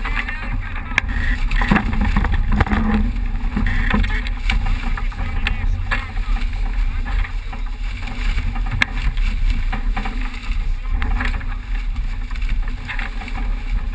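Waves splash and rush against a sailing boat's hull.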